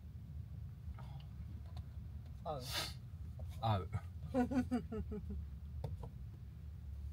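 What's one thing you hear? A young man and a young woman talk and laugh quietly nearby.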